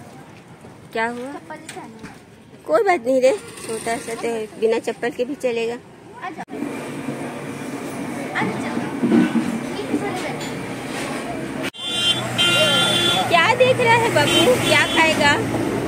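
Children talk and call out nearby.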